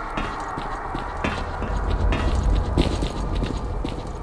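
A campfire crackles nearby.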